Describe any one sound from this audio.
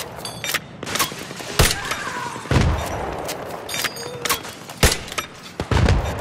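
A rifle fires sharp shots in quick bursts.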